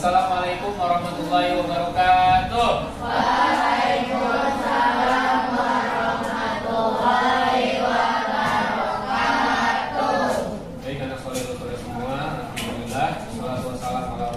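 A group of children recite aloud together in unison.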